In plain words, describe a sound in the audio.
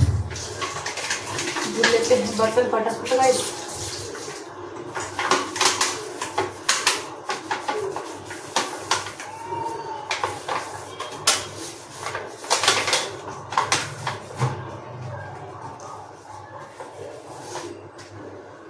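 Metal dishes clink and scrape as they are washed.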